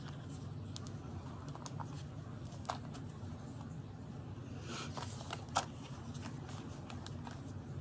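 Binder pages turn with soft paper rustles.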